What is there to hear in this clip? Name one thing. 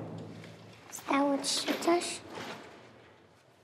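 A man asks a question softly.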